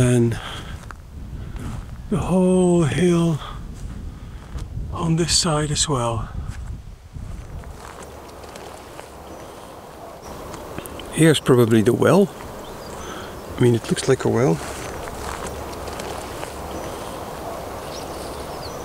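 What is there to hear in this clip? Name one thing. Wind blows through tall dry grass outdoors.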